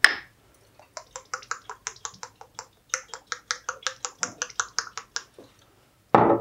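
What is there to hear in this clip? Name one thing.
A bottle rattles as it is shaken quickly.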